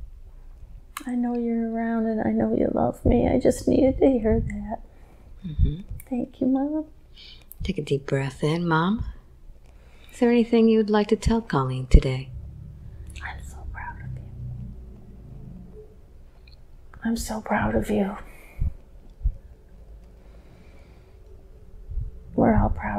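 A middle-aged woman moans and groans in pain, close to a microphone.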